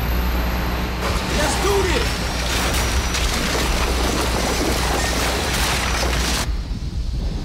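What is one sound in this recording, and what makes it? A large drill grinds against rock.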